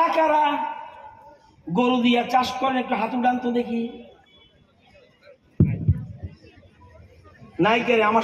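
An elderly man speaks loudly and with animation into a microphone, outdoors.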